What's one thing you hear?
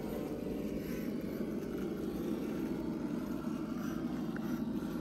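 A small electric motor whirs steadily as a toy truck crawls.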